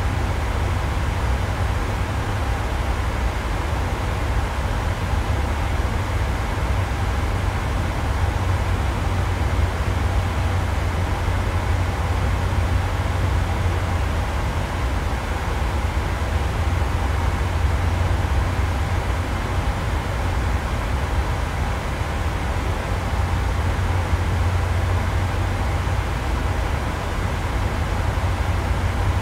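Jet engines hum and cabin air roars steadily inside an airliner's cockpit in flight.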